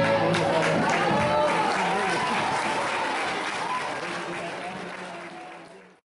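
An acoustic guitar strums along.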